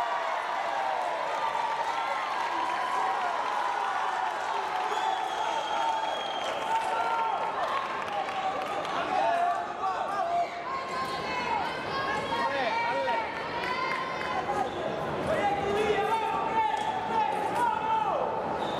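Sports shoes squeak sharply on the floor.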